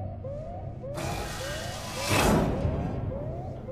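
A mechanical iris door hisses open.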